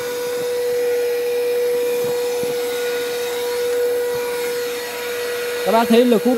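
A small handheld vacuum cleaner hums steadily with a high whine.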